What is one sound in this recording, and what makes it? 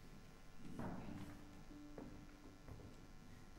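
A string instrument sounds a soft, steady tuning note.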